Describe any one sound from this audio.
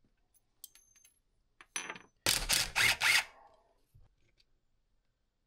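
Small metal parts clink on a workbench.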